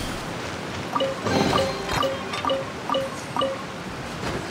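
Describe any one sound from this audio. A game treasure chest opens with a bright chiming jingle.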